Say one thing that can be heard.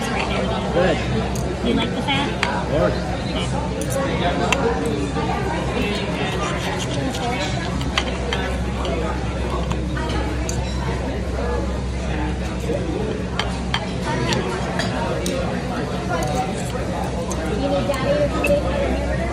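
A knife saws through meat and scrapes on a plate.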